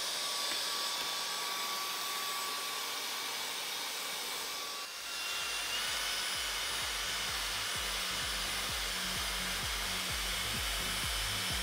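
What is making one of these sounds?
A handheld vacuum cleaner whirs steadily with a high hiss.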